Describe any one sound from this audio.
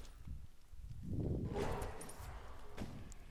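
A burst of magic whooshes and crackles.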